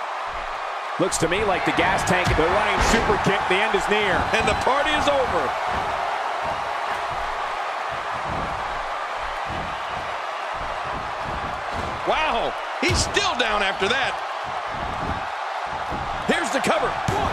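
Heavy bodies thud onto a wrestling ring mat.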